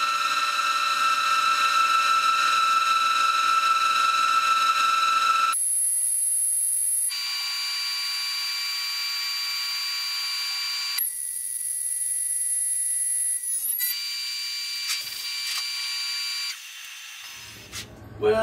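A milling cutter whines steadily at a high pitch as it cuts metal.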